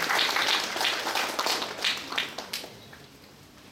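A guitar is strummed.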